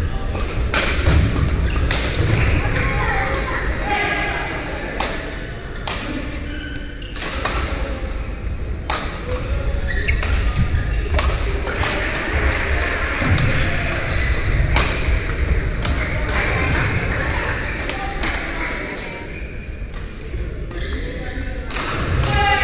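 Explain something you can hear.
A shuttlecock is struck sharply with rackets again and again in a large echoing hall.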